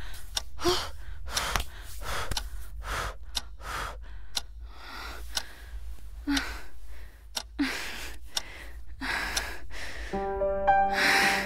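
A young woman speaks softly and anxiously, close by.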